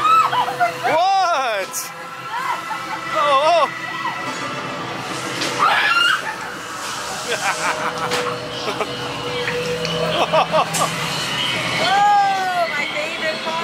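A young woman shrieks loudly.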